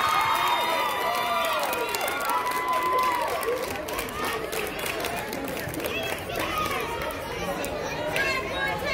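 Young girls shout and call out across a large echoing indoor hall.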